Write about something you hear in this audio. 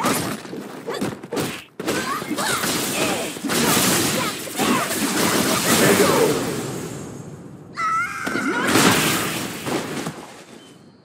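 Punches and kicks land with sharp, heavy hits in a fighting video game.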